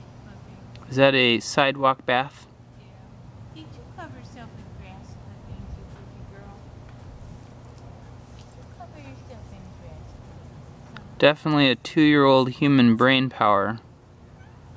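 A young woman speaks outdoors.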